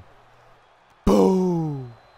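A heavy thud sounds as a body hits the mat.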